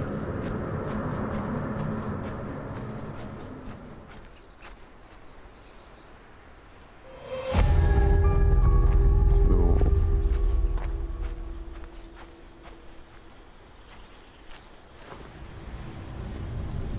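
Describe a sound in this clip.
Leaves rustle as someone pushes through tall plants.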